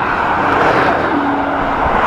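A lorry engine rumbles close alongside.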